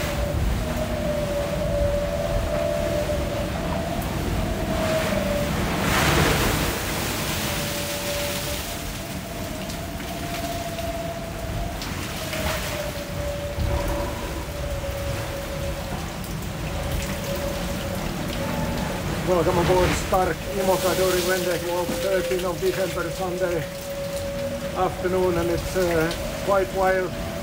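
Strong wind roars and howls through the rigging.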